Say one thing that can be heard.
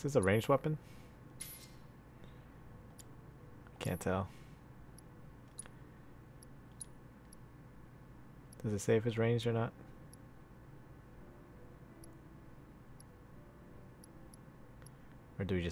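Soft electronic beeps click as menu choices change.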